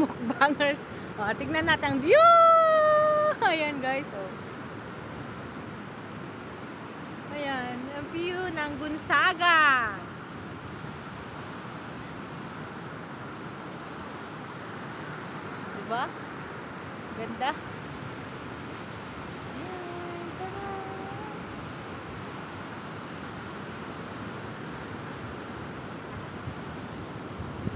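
Waves wash onto a shore in a steady rush.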